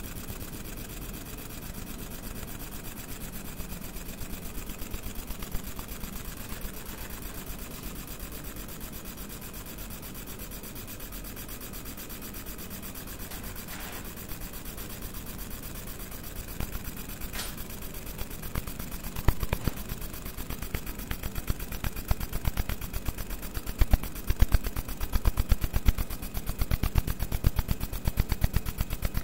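A fiber laser engraves metal with a fine, high buzz and crackle.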